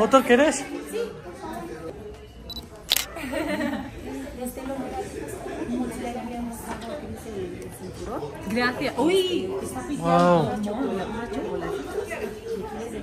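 Several women talk and chat with animation close by.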